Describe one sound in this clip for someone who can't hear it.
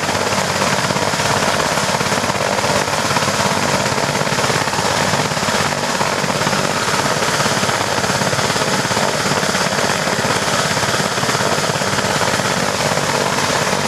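Helicopter rotor blades beat rapidly in a steady rhythm.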